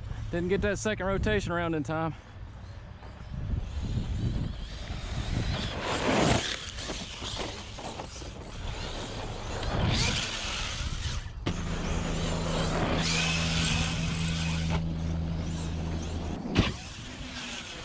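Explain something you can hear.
A small toy car's electric motor whines, revving up and down.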